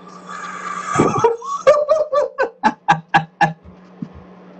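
A young man laughs loudly in bursts over an online call.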